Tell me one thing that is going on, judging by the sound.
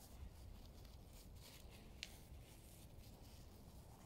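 A plastic bag crinkles and rustles in hands.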